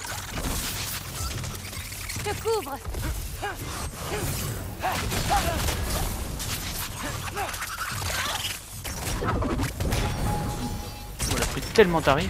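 Fiery magic blasts crackle and roar.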